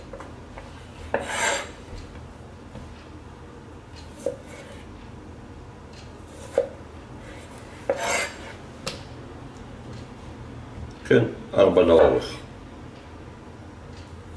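A knife slices through firm raw potato.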